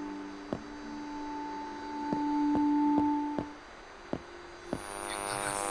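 Footsteps tread slowly on pavement.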